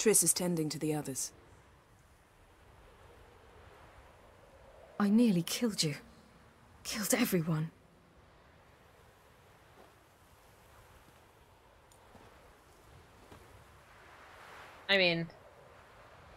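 A young woman speaks quietly into a microphone, in short bursts.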